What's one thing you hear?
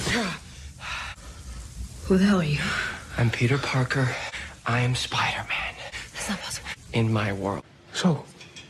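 A young man speaks with animation.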